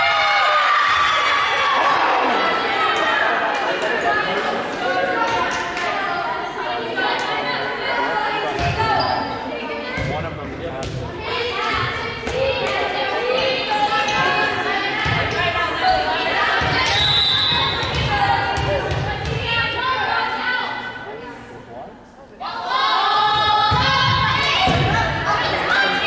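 A volleyball thuds as players hit it.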